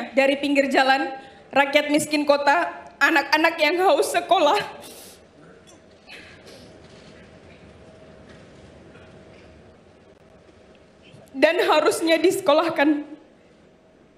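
A young woman reads out into a microphone in a trembling voice.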